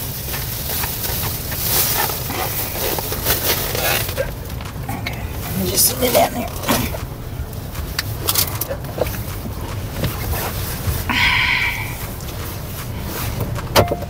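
A low engine rumble hums inside a car.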